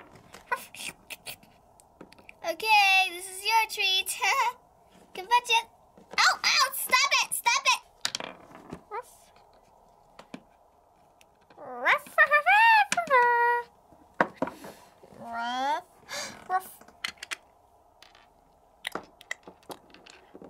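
Small plastic toys tap and knock lightly on a wooden floor.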